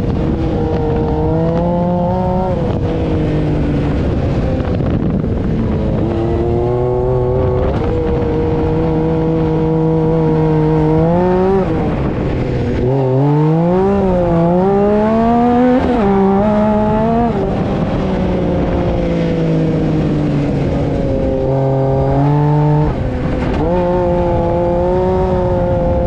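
An engine roars loudly close by, revving up and down as it shifts.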